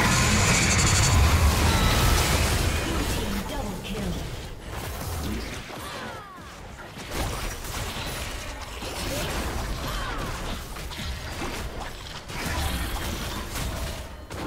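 Video game spell effects crackle and blast rapidly.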